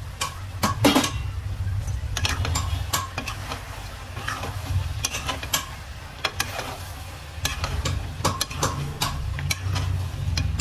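A metal ladle scrapes and clinks against a steel pot while stirring chicken pieces.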